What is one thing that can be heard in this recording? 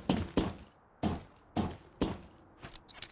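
Footsteps run at a steady pace over a hard surface.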